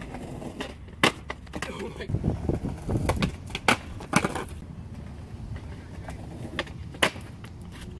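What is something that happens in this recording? A skateboard clacks and grinds sharply on concrete.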